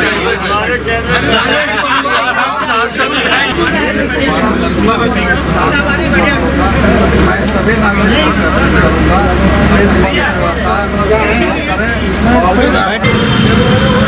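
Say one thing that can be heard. Several men and women chatter close by.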